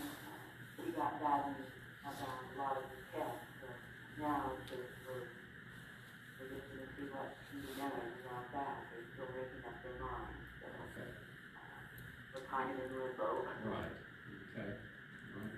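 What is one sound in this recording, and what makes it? An elderly man reads out calmly through a microphone.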